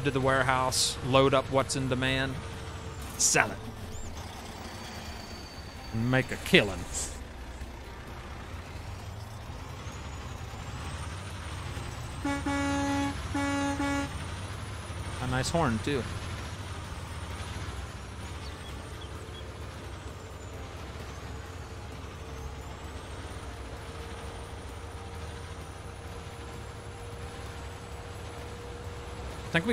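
A truck engine hums low and steady.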